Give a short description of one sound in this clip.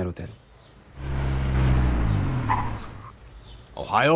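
A car engine rumbles as a car pulls up and stops.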